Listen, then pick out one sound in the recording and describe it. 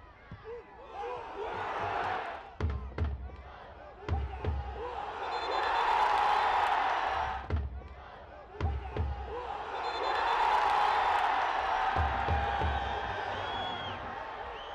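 A crowd roars in a large stadium.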